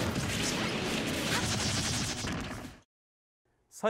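Explosions and fighting blasts crackle loudly.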